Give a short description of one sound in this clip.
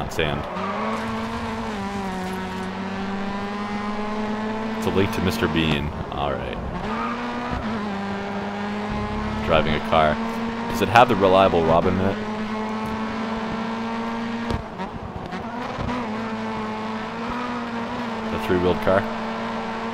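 A racing car engine roars steadily at high revs, its pitch shifting with speed.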